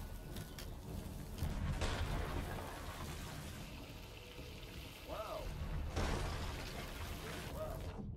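Water sloshes in a flooded hold.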